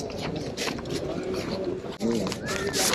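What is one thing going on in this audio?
Paper money rustles in a hand.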